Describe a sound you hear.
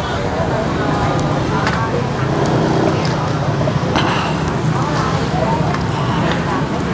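A crowd of people murmurs and chatters close by.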